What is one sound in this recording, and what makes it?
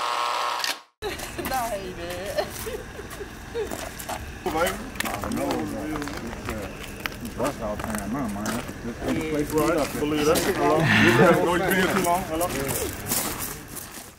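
A small crowd of people chatter outdoors.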